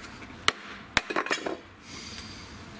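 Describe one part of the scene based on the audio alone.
Wood splits and cracks under a knife blade.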